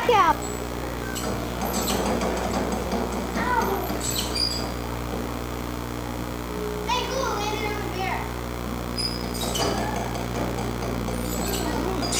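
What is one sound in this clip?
Hands tap and knock on an exhibit panel.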